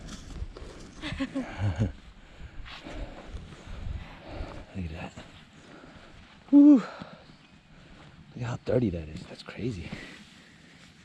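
A man speaks casually close to the microphone.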